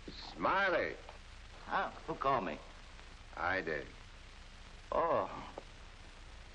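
A second man speaks with surprise.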